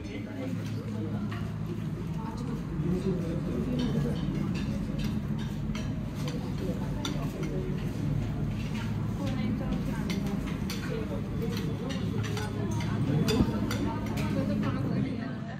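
Cutlery and plates clink.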